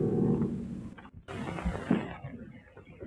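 A man speaks in a low voice.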